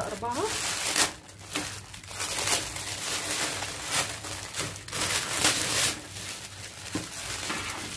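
Plastic wrap crinkles and rustles as hands handle it.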